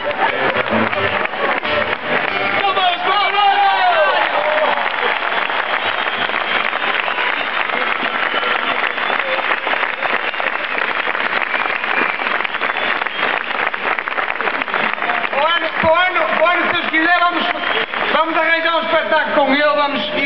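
A large outdoor crowd cheers and claps loudly.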